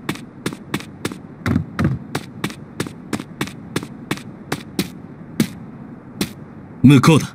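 Quick footsteps tap on stone paving.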